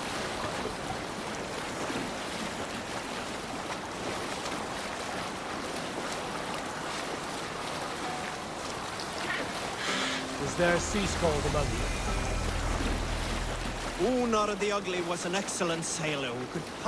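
Water splashes and rushes against a boat's hull as it glides along.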